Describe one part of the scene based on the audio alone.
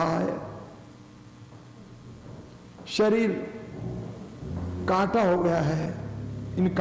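An elderly man speaks calmly into a close microphone.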